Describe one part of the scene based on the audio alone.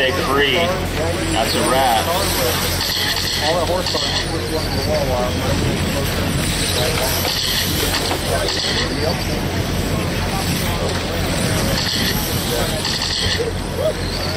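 Small electric model cars whine past at high speed, again and again.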